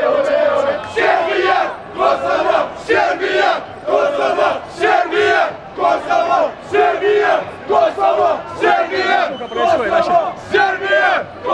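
A group of young men chants in short, rhythmic bursts.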